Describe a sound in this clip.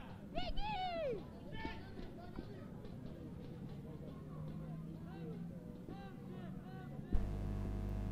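Footballers call out to each other across an open pitch outdoors.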